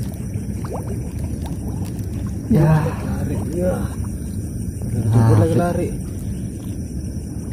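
Water laps gently outdoors.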